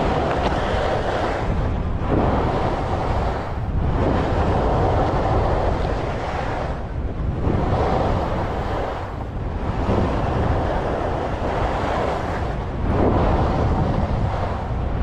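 Skis scrape and hiss over packed snow in rhythmic turns.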